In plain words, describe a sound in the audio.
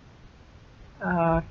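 A cat meows loudly.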